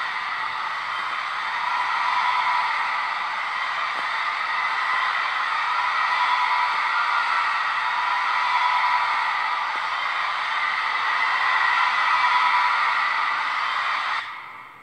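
A concert crowd cheers and roars through a small phone speaker.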